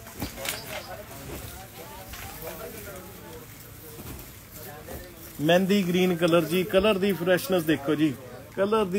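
A man speaks close by, calmly and then with animation.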